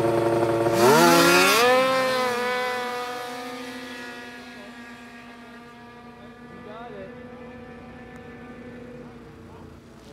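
A snowmobile engine roars close by, revving up as it speeds past and then fading into the distance.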